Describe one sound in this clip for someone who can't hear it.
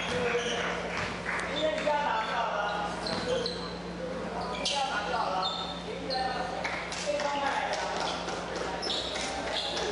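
Young men chatter nearby in a large echoing hall.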